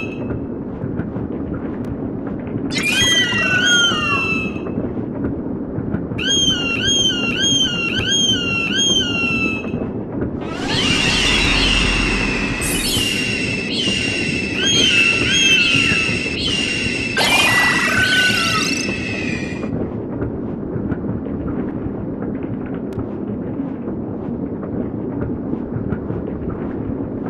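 Wind rushes steadily past a flying eagle.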